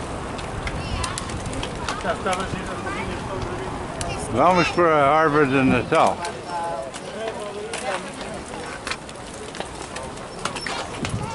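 Several people talk nearby, outdoors.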